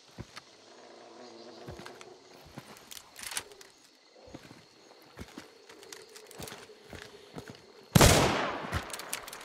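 Footsteps scrape and thud on rocky ground.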